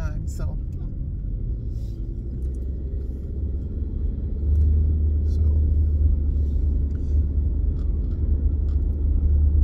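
A car engine and road noise rumble steadily inside a moving car.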